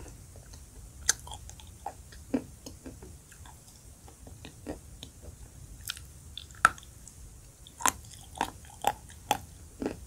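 A woman chews crunchily close to a microphone.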